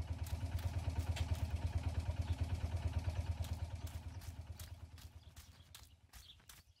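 A horse's hooves thud quickly on dirt and fade away.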